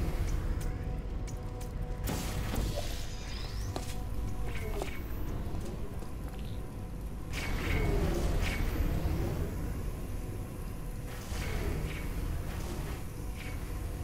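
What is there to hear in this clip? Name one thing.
Electronic clicks and chimes sound now and then.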